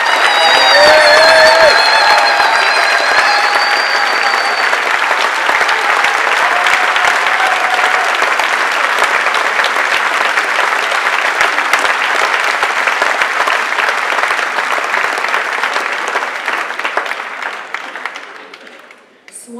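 An audience claps and cheers loudly in a large hall.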